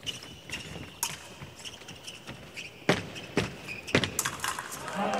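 Fencing blades clash and click sharply several times.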